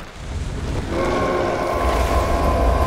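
A deep monstrous voice roars.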